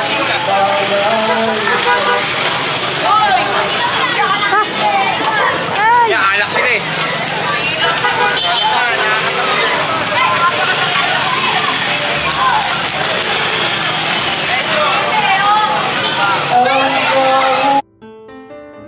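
A crowd of men and women chatter and call out loudly outdoors.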